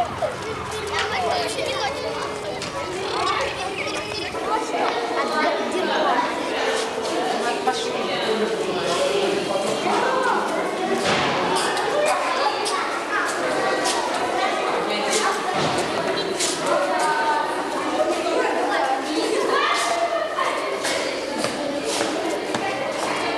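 Young children chatter and call out all around, echoing in a hallway.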